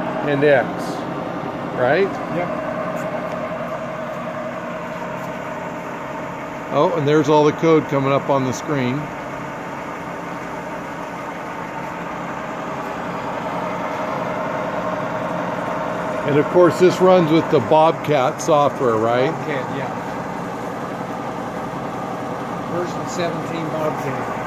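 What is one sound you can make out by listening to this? A milling machine hums steadily as its cutter spins.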